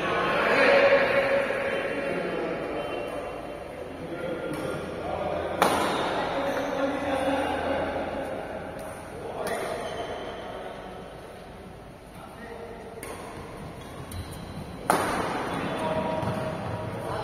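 Badminton rackets smack a shuttlecock back and forth in an echoing hall.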